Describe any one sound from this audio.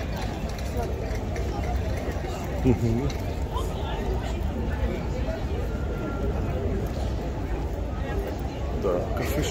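People chatter in the distance outdoors.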